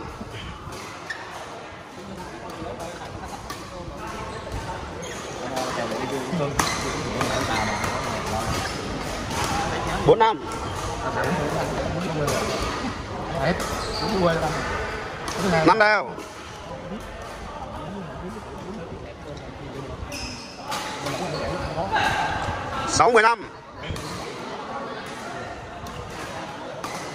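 Voices of players chatter and call out across a large echoing hall.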